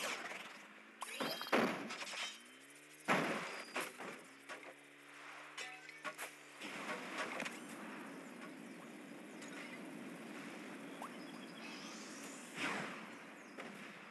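Game sound effects whoosh in sudden bursts.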